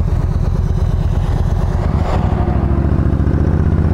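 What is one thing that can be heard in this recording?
A large vehicle whooshes past going the other way.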